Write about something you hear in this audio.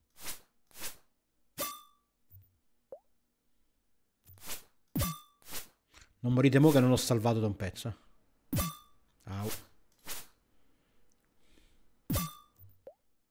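Short game sound effects click and clang in quick bursts.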